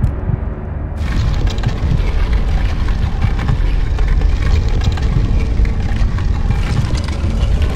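A heavy stone block grinds and scrapes across a stone floor.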